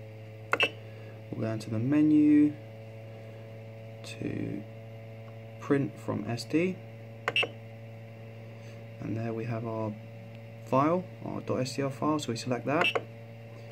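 A knob clicks as it turns.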